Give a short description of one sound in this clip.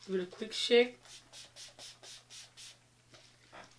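A spray bottle hisses in quick, repeated bursts.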